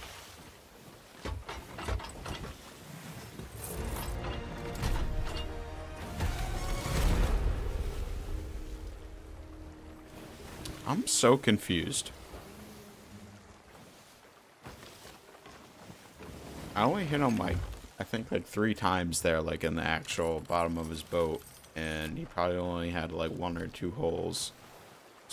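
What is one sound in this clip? Sea waves wash against a wooden ship.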